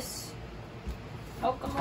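A plastic lid is twisted on a jug.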